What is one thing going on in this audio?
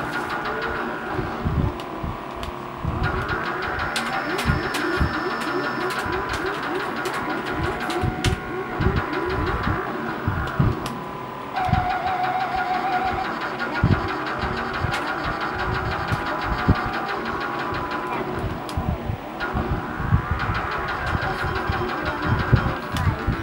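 A racing video game's car engine drones and rises in pitch through a television speaker.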